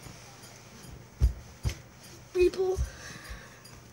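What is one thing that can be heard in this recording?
Fabric rustles and bumps against a microphone.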